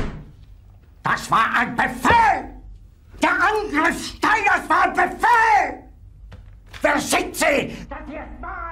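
An older man shouts angrily and furiously.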